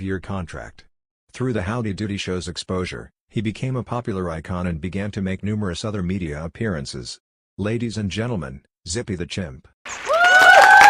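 An elderly man speaks calmly, as if narrating.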